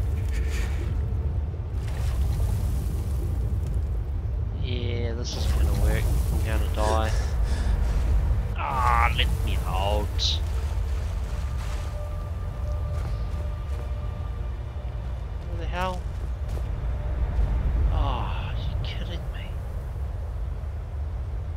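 Water gurgles and splashes around a swimmer.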